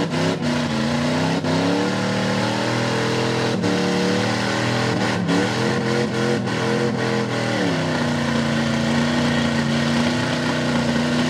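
A truck engine revs hard, rising and falling as the truck churns through deep mud.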